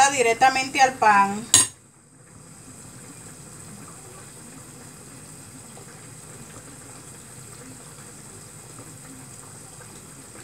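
Gas burners hiss steadily.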